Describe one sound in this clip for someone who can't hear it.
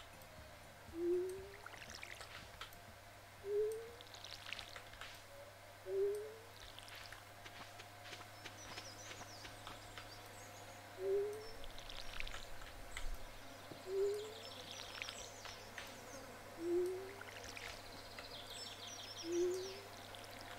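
A watering can pours in short bursts every few seconds.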